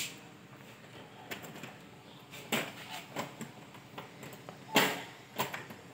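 A key rattles and clicks in a door lock.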